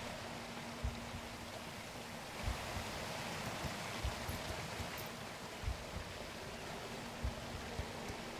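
Heavy footsteps thud at a steady pace.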